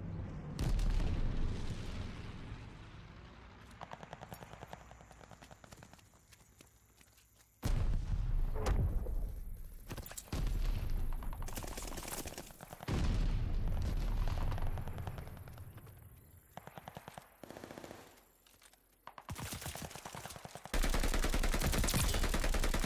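Bursts of rapid gunfire rattle loudly.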